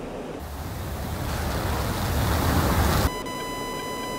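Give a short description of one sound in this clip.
A jet engine roars loudly and swells.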